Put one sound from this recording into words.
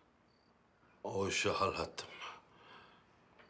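A man speaks sharply and loudly up close.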